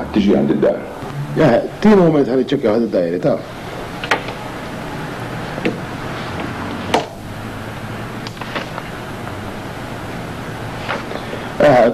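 A middle-aged man talks into a telephone handset.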